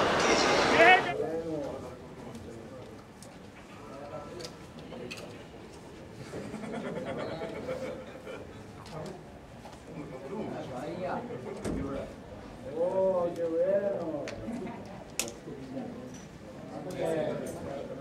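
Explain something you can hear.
Men talk casually nearby in an echoing corridor.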